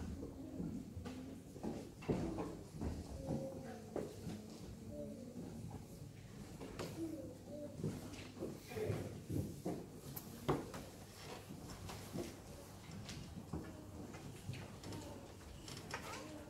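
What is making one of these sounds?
A man speaks in a low voice in a large echoing hall.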